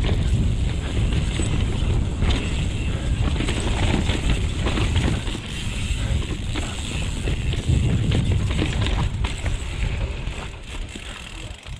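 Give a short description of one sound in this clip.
Bike tyres rumble and crunch over a rough dirt trail.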